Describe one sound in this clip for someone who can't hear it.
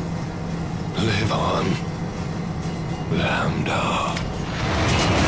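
An older man speaks weakly.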